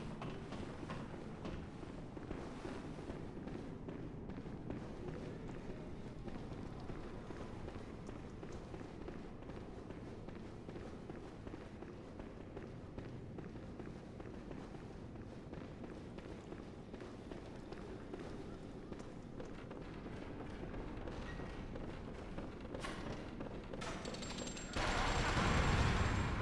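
Footsteps thud on stone floors and stairs.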